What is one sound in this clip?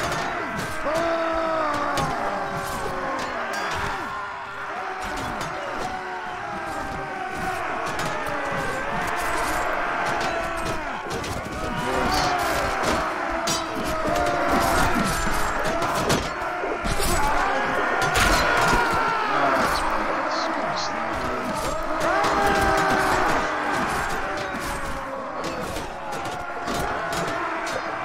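Weapons clash and thud with many sharp knocks.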